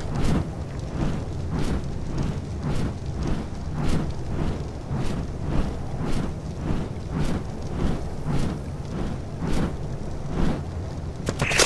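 A large winged creature flaps its wings in a steady, quick rhythm.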